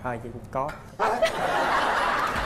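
A crowd laughs and applauds.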